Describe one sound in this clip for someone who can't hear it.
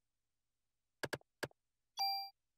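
Short electronic menu clicks sound twice.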